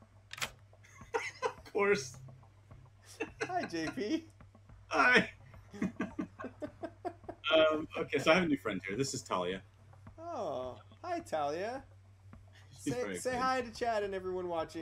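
A second man talks and laughs over an online call.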